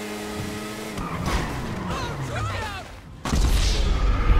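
A motorbike crashes with a loud impact.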